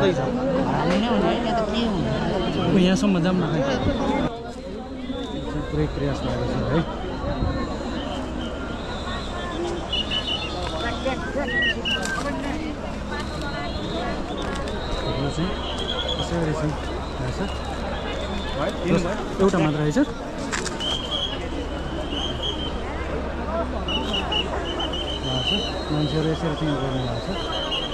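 Men talk loudly nearby outdoors.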